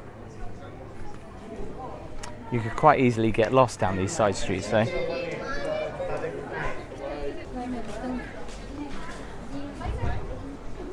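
A crowd of people chatters and murmurs nearby outdoors.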